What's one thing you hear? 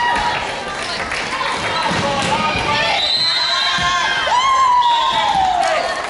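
A volleyball is struck with a dull thump.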